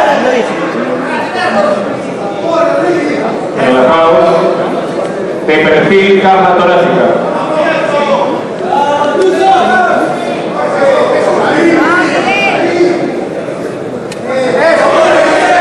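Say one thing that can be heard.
A crowd in a large hall cheers and shouts loudly.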